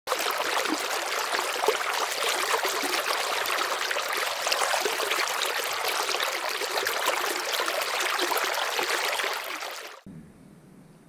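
A river rushes and splashes steadily over rocks.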